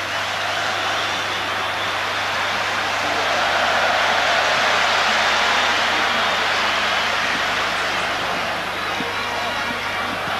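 A large stadium crowd roars and chants steadily, swelling and easing.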